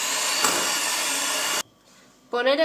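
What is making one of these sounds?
A hand mixer whirs loudly.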